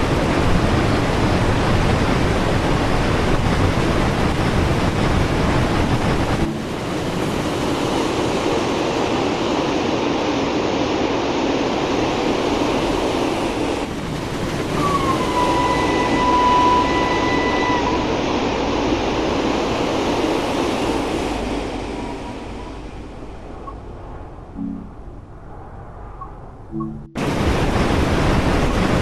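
A steam locomotive rumbles and hisses loudly from inside its cab.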